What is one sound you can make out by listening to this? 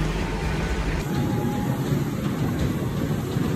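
A treadmill belt hums under running footsteps.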